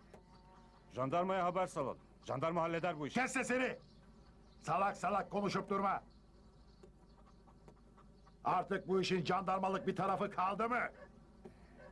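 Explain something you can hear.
An elderly man speaks loudly and forcefully outdoors, close by.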